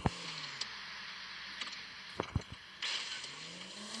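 A car tips over and thuds onto the ground.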